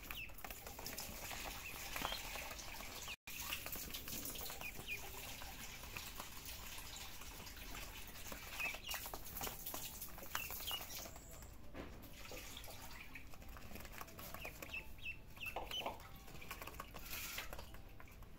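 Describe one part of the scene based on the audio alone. Ducklings peep in short, high chirps.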